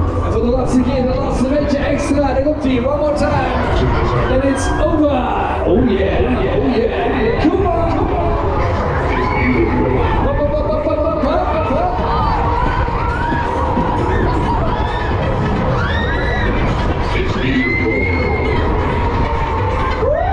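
Loud pop music plays over a loudspeaker.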